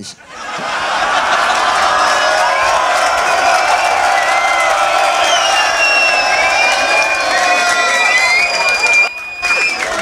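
A crowd cheers, whistles and shouts loudly in an echoing room.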